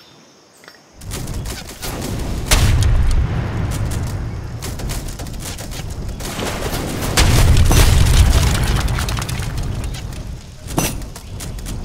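Cannons boom heavily, with deep rumbling blasts.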